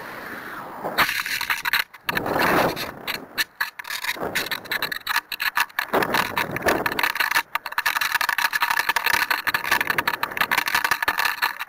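Wind rushes and buffets loudly in gusts.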